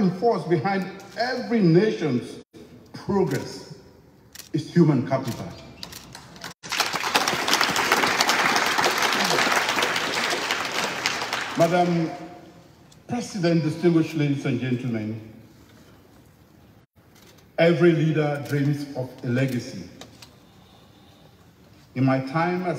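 A man speaks through a microphone and loudspeakers in a large echoing hall.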